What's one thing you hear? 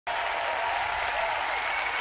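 A woman shouts excitedly.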